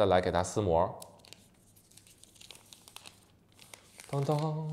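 Plastic film crinkles as it is peeled off a phone.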